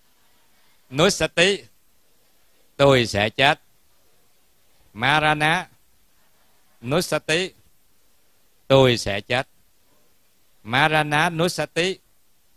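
A middle-aged man speaks calmly into a microphone in short phrases with pauses between them.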